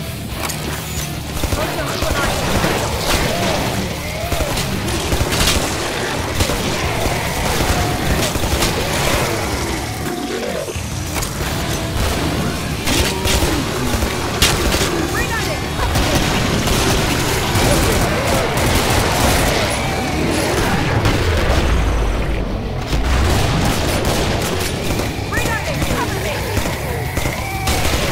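Monsters screech and growl close by.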